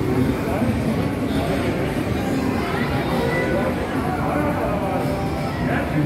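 Arcade machines play electronic jingles and beeps.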